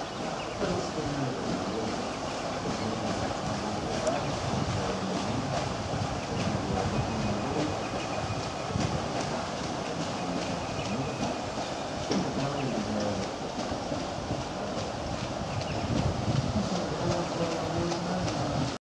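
A paddle steamer's steam engine chugs steadily nearby.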